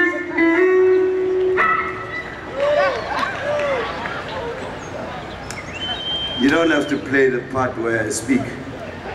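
An electric guitar plays a bending melody.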